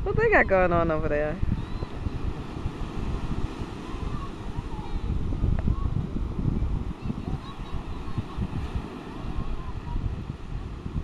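Ocean waves break and wash onto the shore.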